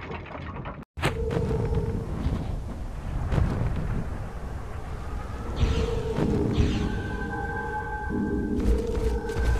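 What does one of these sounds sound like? Spell effects crackle and burst in a fantasy battle.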